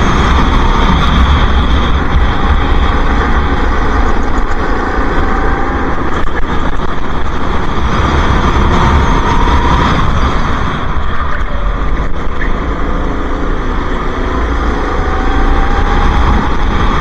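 A go-kart engine roars loudly close by, its pitch rising and falling with the throttle.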